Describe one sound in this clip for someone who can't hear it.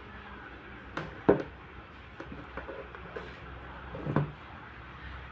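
Small plastic parts click and knock as a woman handles a device.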